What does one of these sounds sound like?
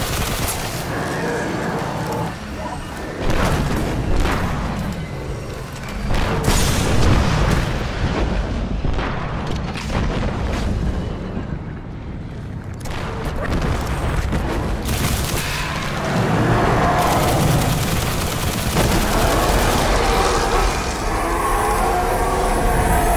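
Guns fire in rapid bursts with booming blasts.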